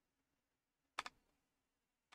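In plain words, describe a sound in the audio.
A game piece clacks onto a board.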